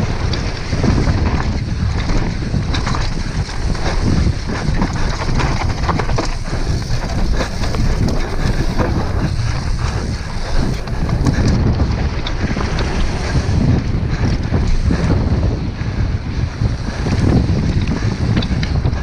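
Wind rushes loudly past, buffeting close by.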